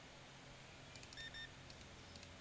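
A checkout scanner beeps several times.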